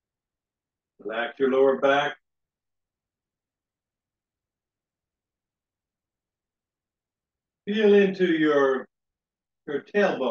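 An older man speaks calmly in short phrases, close to a microphone.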